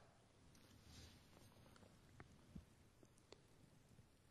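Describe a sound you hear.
Book pages rustle softly.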